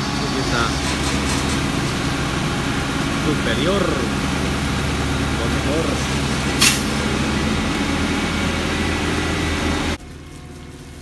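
A truck's diesel engine idles with a steady low rumble.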